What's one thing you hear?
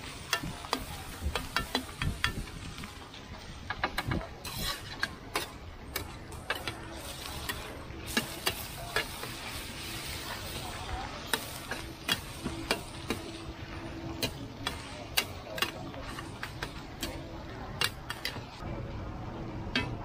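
Eggs sizzle and hiss as they fry in oil.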